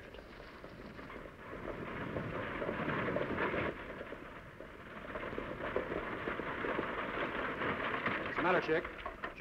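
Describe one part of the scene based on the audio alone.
Horses gallop and hooves pound the ground.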